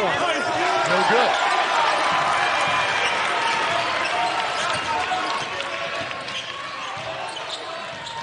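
A basketball bounces on the court.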